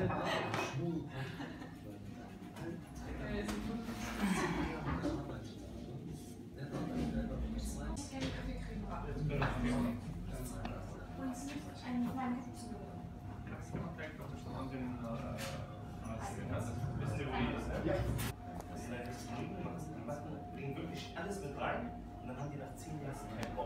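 Men talk in low voices nearby, indoors.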